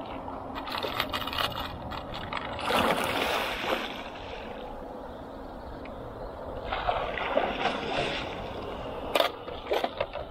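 Lures rattle in a plastic tackle box.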